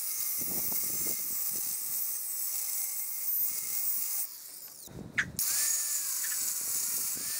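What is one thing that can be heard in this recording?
An angle grinder whines as it grinds metal.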